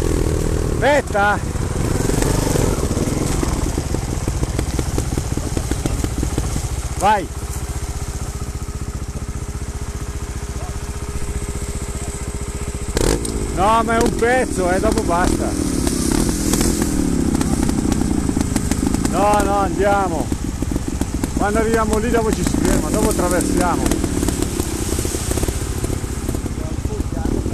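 A dirt bike engine runs close by, idling and revving.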